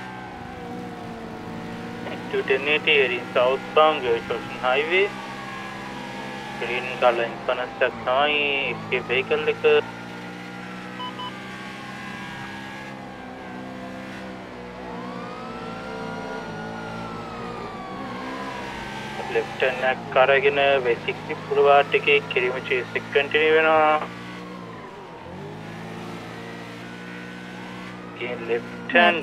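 A police siren wails, rising and falling in the distance.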